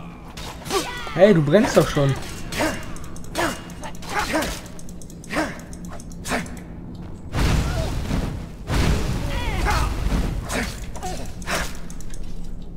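Metal weapons clash and strike repeatedly.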